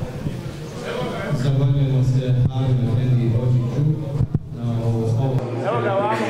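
A young man speaks through a microphone over loudspeakers, calmly and clearly.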